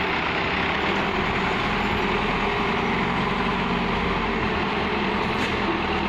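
Dirt and rubble pour into a truck bed.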